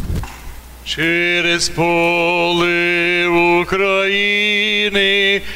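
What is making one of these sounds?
A man chants in a steady, drawn-out voice in a large echoing hall.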